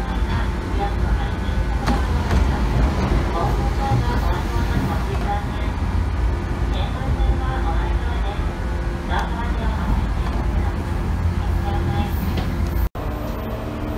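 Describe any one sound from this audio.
A train rumbles along the tracks with a loud, steady low roar.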